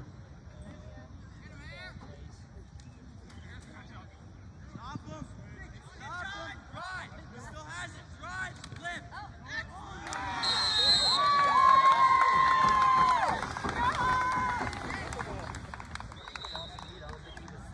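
Young players and spectators shout and call out across an open outdoor field.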